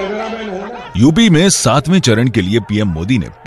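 A crowd of men chants loudly in rhythm.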